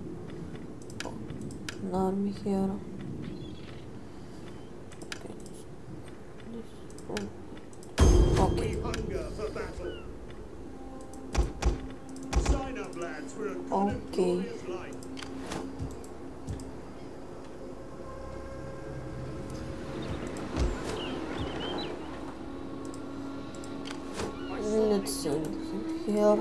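Game menu buttons click.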